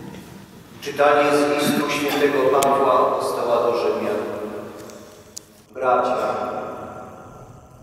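A crowd sings together, echoing through a large hall.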